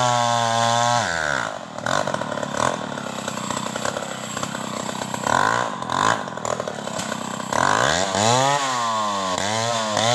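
A chainsaw cuts through a tree trunk with a rough, buzzing whine.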